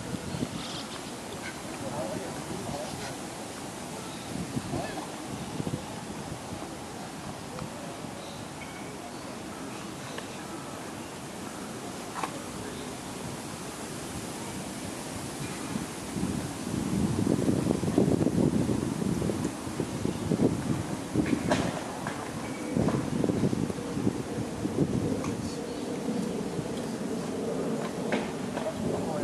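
An electric guitar plays loud, noisy chords through an amplifier outdoors.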